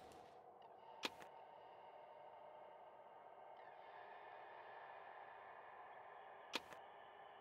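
A short menu click sounds.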